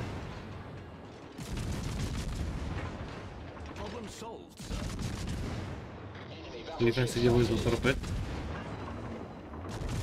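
Heavy guns fire with deep booms.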